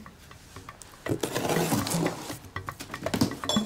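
A blade slices through packing tape on a cardboard box.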